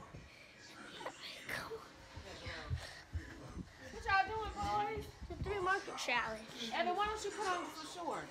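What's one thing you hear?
A boy speaks excitedly close to a phone microphone.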